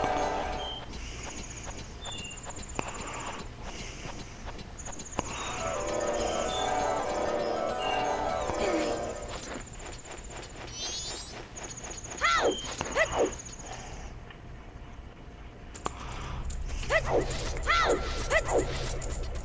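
Electronic game music plays with chiming tones.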